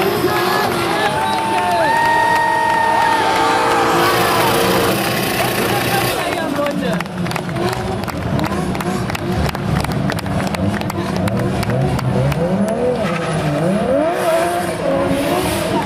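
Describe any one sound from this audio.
A drift car's engine revs hard.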